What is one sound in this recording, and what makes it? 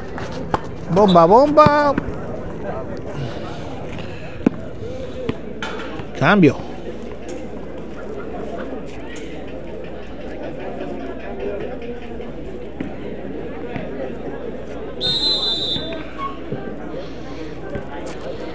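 A crowd of people chatter in the distance outdoors.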